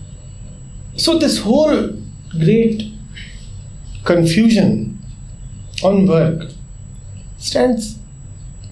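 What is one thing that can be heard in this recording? A man speaks calmly and with emphasis, close to a microphone, in short phrases.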